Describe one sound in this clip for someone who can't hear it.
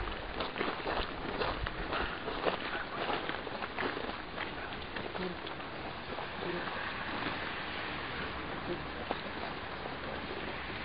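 Cloth rustles as a large sheet is spread and smoothed.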